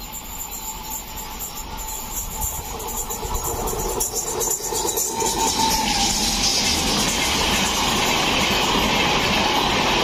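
An electric train approaches and roars past close by.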